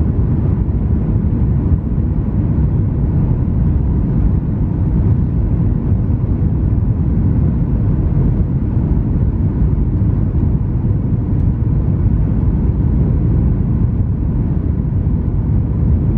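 Jet engines roar steadily with a deep rushing hum inside an airliner cabin.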